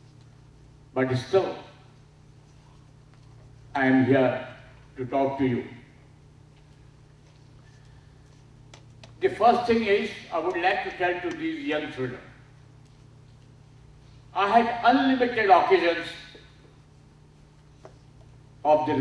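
A middle-aged man speaks into a microphone in short phrases, heard through loudspeakers in a large room.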